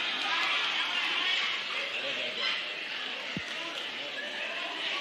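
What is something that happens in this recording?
An audience murmurs and chatters in a large echoing hall.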